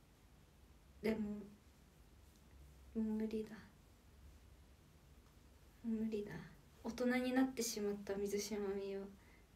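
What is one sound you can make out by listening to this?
A young woman speaks softly and close up, in short phrases with pauses.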